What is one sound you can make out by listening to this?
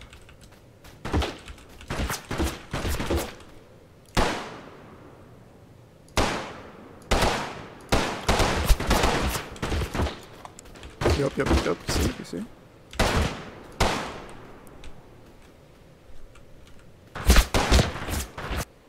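Rifle shots crack and echo across open ground.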